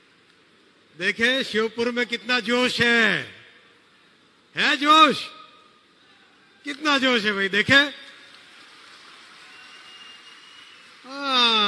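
A middle-aged man speaks with animation into a microphone over loudspeakers.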